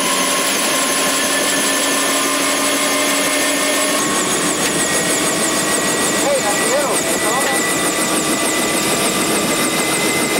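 A helicopter engine whines steadily close by.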